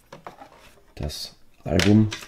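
A case is set down on a wooden table with a light knock.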